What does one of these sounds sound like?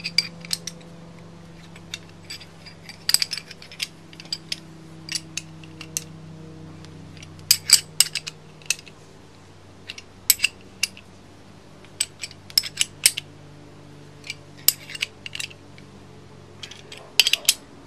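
A ratchet wrench clicks rapidly as it turns a bolt.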